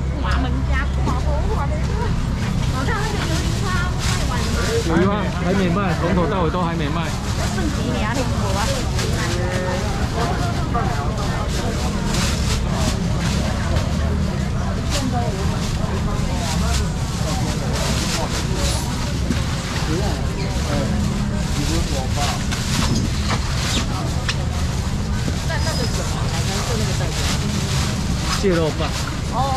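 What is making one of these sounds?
A crowd of men and women chatter all around in a busy room.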